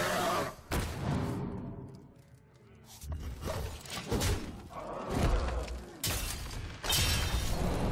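Magical game sound effects whoosh and chime.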